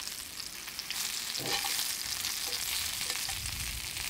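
Metal tongs scrape and clack against a pan.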